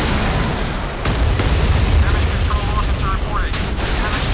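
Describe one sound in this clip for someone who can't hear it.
A huge explosion booms and roars.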